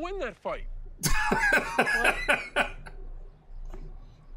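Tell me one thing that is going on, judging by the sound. A man laughs heartily close to a headset microphone.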